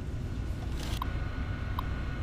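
A computer terminal beeps.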